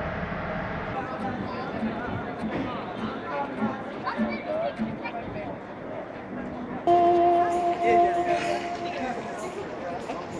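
A crowd of men and women chatters nearby in a busy street.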